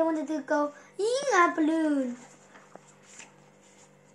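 Book pages turn with a soft rustle.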